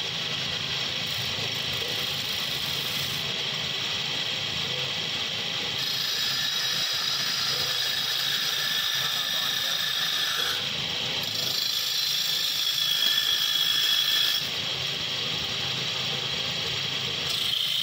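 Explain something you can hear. A lathe motor hums and whirs steadily.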